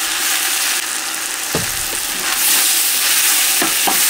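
A wooden spoon scrapes and stirs food in a pot.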